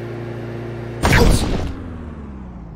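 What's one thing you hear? A toy car crashes into a wall with a loud bang.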